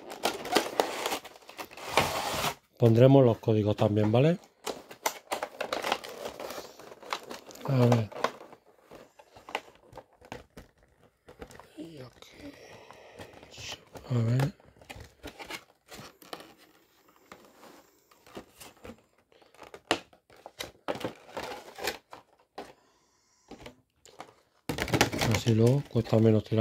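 Stiff plastic packaging crinkles and clicks as hands handle it.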